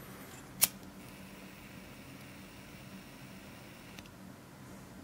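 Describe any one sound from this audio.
A lighter flame hisses softly.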